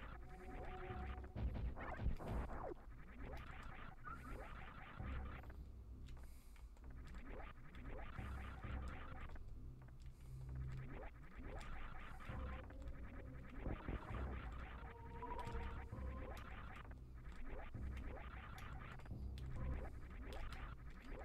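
Retro video game music plays steadily.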